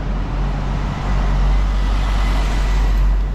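A truck drives by with a deep engine rumble.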